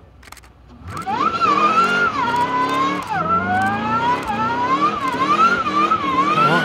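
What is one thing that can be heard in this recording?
Tyres screech as they spin.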